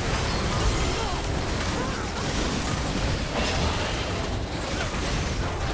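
Game spells and attacks crackle and blast in a fight.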